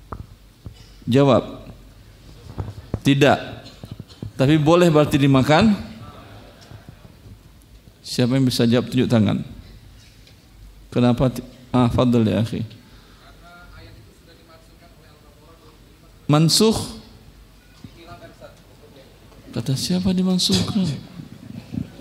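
A middle-aged man speaks into a close microphone with animation, in short bursts with pauses.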